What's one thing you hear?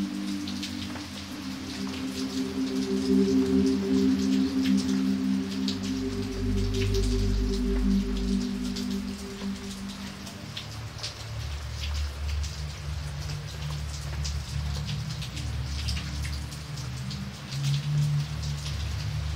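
Heavy rain splashes into puddles.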